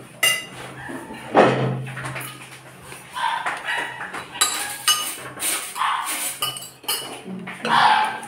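A middle-aged woman talks casually close by.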